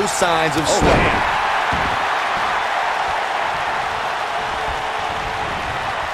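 Heavy bodies thud against each other in a wrestling ring.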